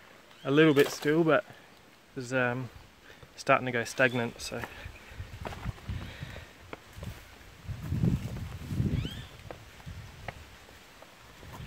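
Footsteps crunch and scrape over rocks.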